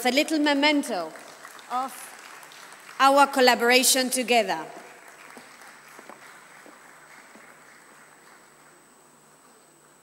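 An audience applauds, then slowly fades.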